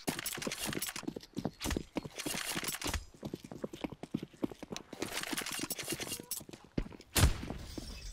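Footsteps patter quickly on hard floors.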